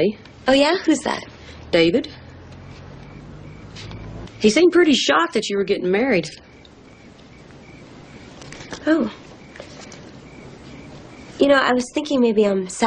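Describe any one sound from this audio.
A young woman speaks calmly and warmly close by.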